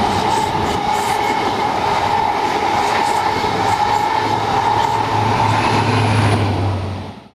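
A train rumbles past on the tracks close by.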